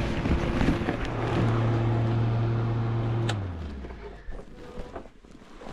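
Clothing rustles and rubs right against the microphone.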